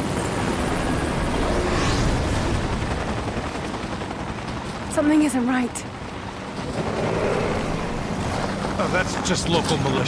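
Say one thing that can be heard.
A helicopter's rotor thumps overhead.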